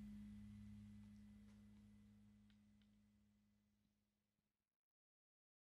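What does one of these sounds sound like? A band's last chord rings out in a large echoing hall and slowly fades.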